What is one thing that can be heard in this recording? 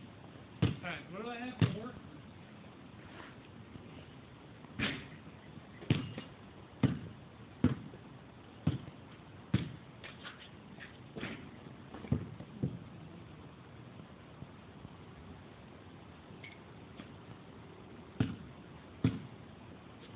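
A basketball bounces repeatedly on hard pavement outdoors.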